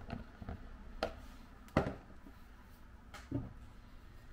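Small knocks sound against a metal bowl.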